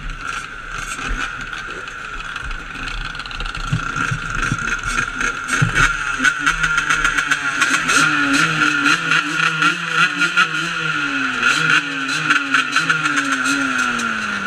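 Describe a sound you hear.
Motorbike engines idle and rev loudly close by.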